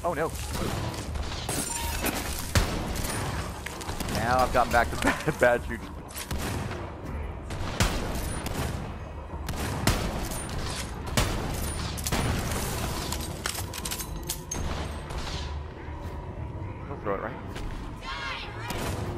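Rifle shots fire in sharp bursts.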